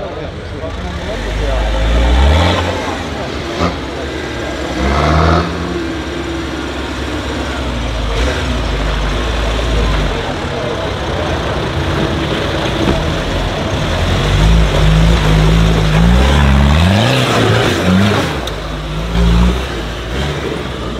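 Tyres crunch and scrape over loose rocks and gravel.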